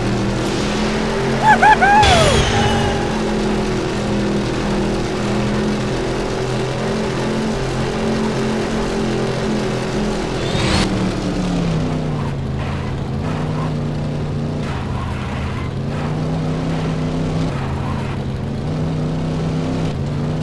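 Tyres skid and scrape over loose dirt.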